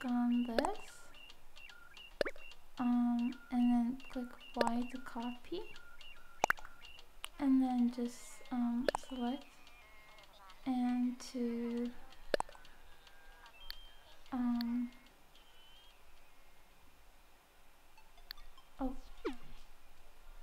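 Soft menu blips and clicks sound as options are selected.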